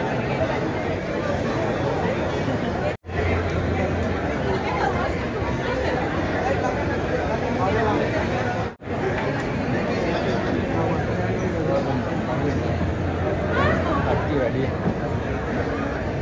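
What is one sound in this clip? A crowd of men and women chatters loudly all around.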